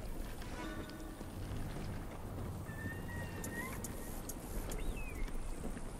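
A bowstring creaks as a bow is drawn and held.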